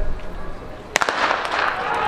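A starting pistol fires once.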